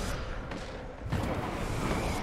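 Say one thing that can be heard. A fiery explosion bursts with a loud boom.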